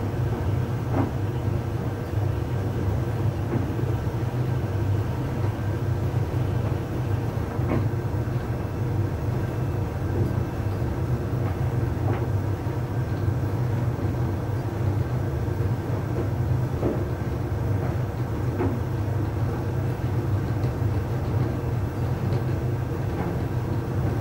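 Clothes thump softly inside a tumbling drum.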